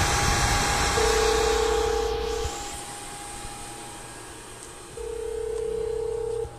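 A loudspeaker blares a harsh buzzing tone in two long bursts.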